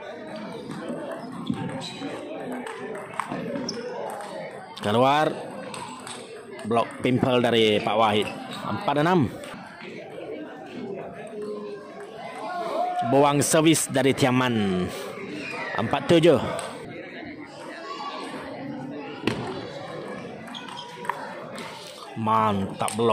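A table tennis ball clicks off paddles and bounces on the table in a large echoing hall.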